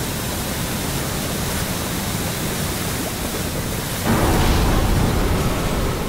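Steam hisses steadily from a vent.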